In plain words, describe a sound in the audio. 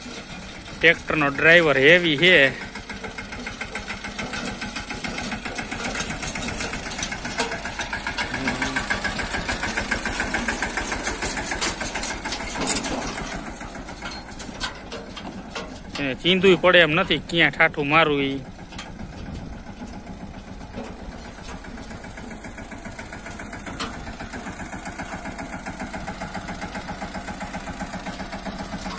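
A tractor engine chugs steadily nearby.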